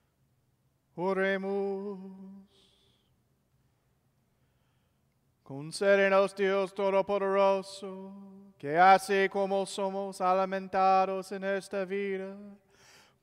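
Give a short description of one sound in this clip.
A man chants in a sustained singing voice through a microphone in a large echoing hall.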